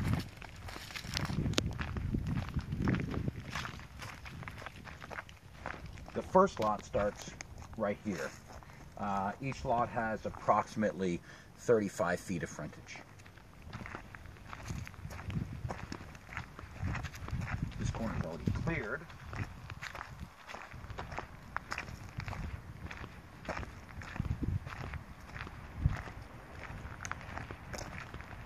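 Footsteps crunch on dry leaves and gravel.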